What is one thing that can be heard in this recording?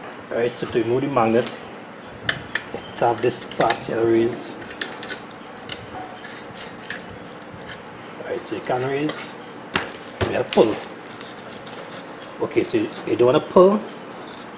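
Small metal parts click and clack as hands handle them.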